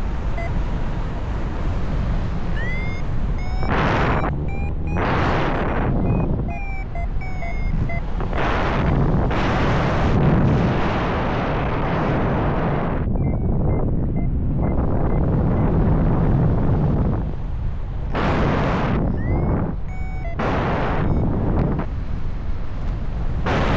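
Strong wind roars and buffets past, loud and gusting, high in the open air.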